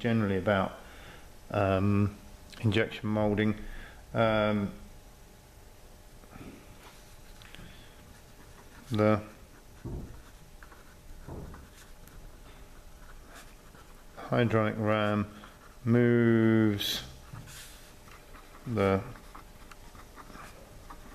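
A pen scratches softly across paper.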